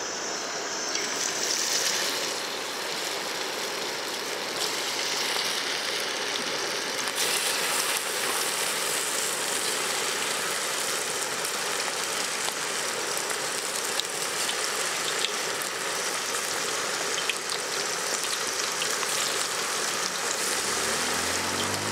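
Hot oil sizzles and crackles loudly.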